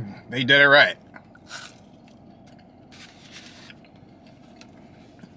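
A man chews food softly.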